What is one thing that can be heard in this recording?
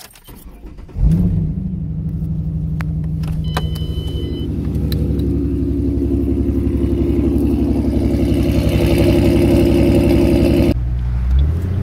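A car engine starts and idles with a deep, steady rumble.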